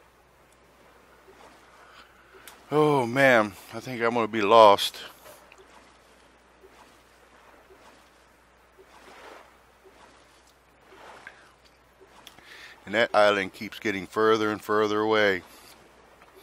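A paddle splashes and dips into water.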